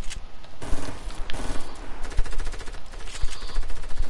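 Wooden walls are quickly built with clattering knocks.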